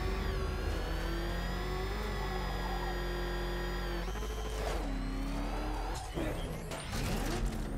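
A powerful engine roars steadily and changes pitch.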